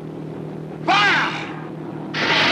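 A man shouts loudly in alarm.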